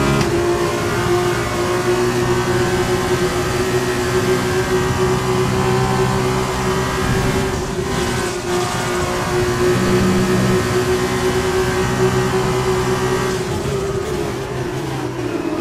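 A racing car engine screams at high revs, dropping in pitch as the driver brakes.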